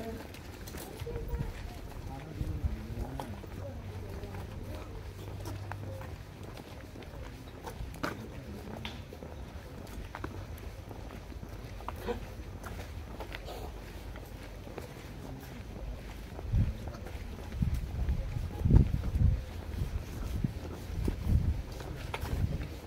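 Plastic bags rustle as they swing.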